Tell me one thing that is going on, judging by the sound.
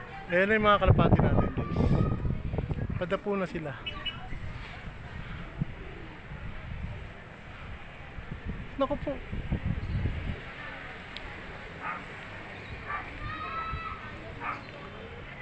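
A flock of pigeons flaps its wings overhead.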